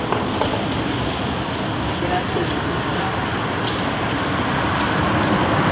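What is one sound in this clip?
Footsteps scuff along a sidewalk.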